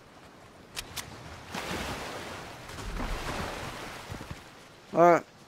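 Water splashes as a figure wades through a river.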